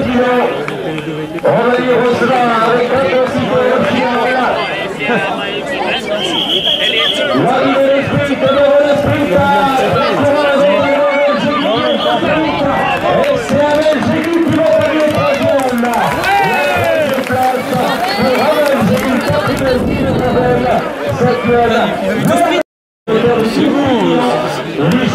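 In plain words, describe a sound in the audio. A crowd of men and women chatter and cheer outdoors nearby.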